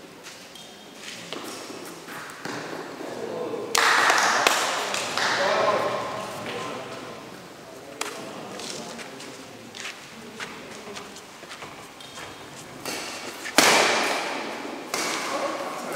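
Shuttlecocks are struck with rackets in an echoing hall.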